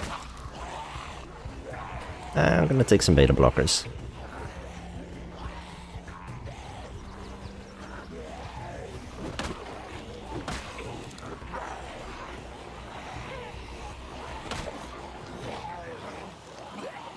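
Zombies groan and moan in a crowd.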